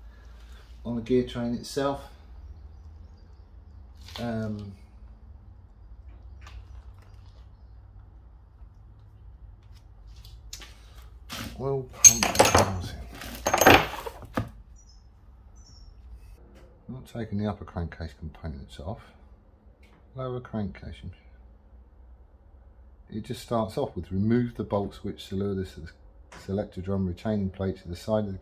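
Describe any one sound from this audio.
An older man talks calmly, close by.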